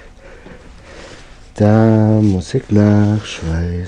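A cloth rustles as hands rub it.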